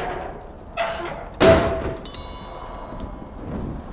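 A wooden chest lid creaks and thuds open.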